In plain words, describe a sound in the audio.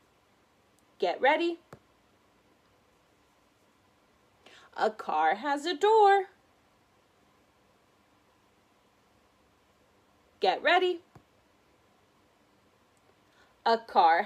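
A woman speaks close by, clearly and slowly, in short phrases with pauses.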